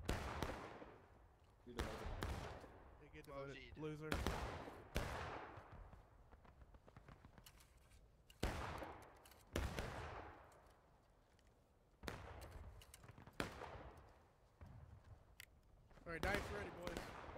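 Muskets fire nearby, each shot booming and echoing away.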